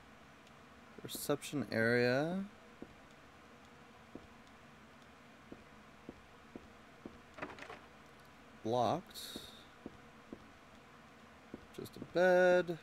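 Footsteps tap softly and steadily.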